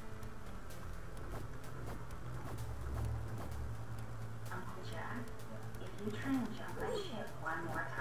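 Video game music plays with a low droning beat.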